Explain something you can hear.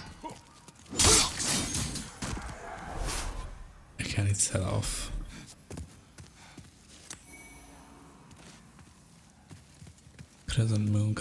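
A man talks casually into a microphone, close up.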